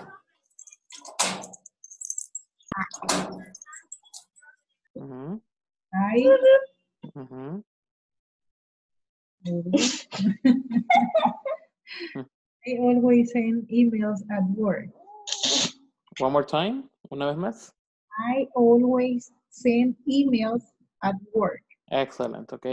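A woman speaks calmly and clearly over an online call.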